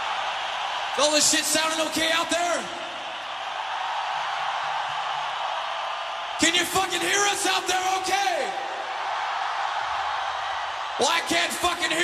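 A man sings loudly into a microphone through loudspeakers.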